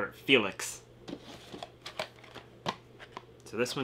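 A cardboard box rattles and taps as it is handled.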